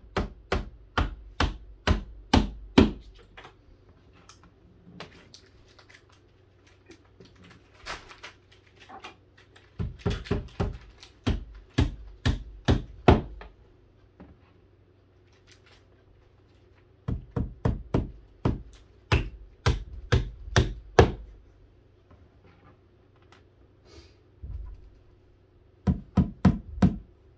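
A hammer taps on wood in quick bursts of blows.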